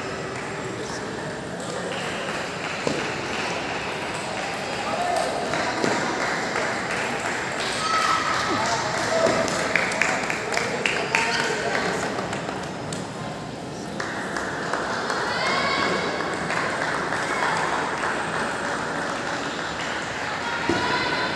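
A crowd murmurs steadily in the background.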